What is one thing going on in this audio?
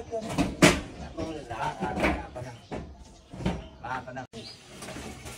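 Men talk to each other close by.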